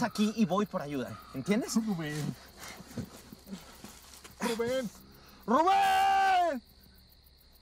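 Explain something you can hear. A man groans and moans in pain close by.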